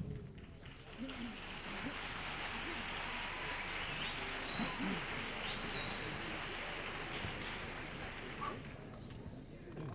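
Several men talk and murmur on a stage in a large echoing hall.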